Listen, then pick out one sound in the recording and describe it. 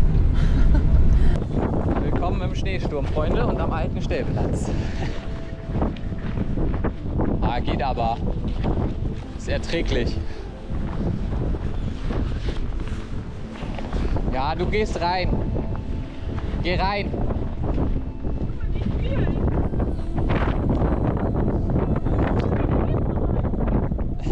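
Strong wind blows and roars outdoors.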